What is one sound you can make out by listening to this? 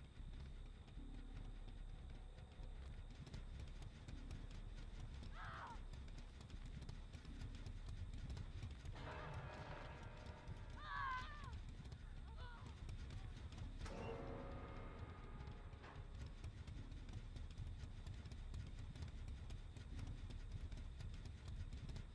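A low wind rumbles steadily outdoors.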